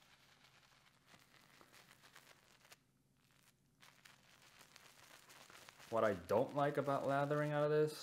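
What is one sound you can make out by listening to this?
A shaving brush swirls softly against soap in a tub.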